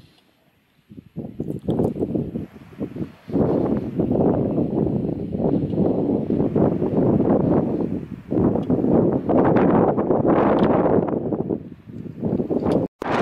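Wind blows in strong gusts outdoors.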